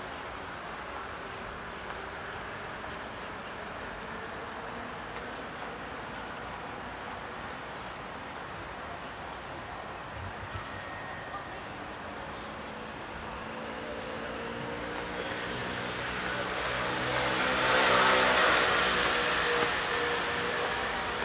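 Traffic hums on a street outdoors.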